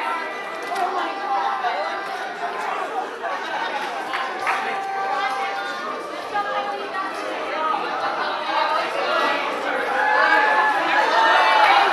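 Several young women talk and laugh excitedly nearby.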